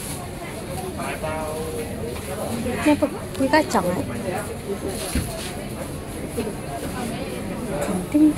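Adult men and women chat nearby in a busy room.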